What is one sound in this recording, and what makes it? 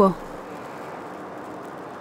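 A young man speaks quietly and hesitantly, close by.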